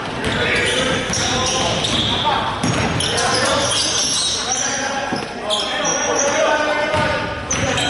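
Spectators murmur and call out.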